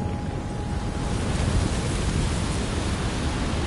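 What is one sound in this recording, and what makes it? Heavy rain and wind rush steadily.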